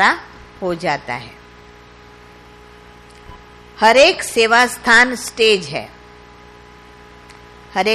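A middle-aged woman speaks calmly into a microphone, with pauses.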